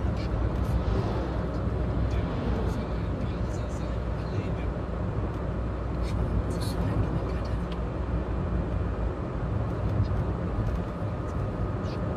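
A car engine hums steadily, heard from inside.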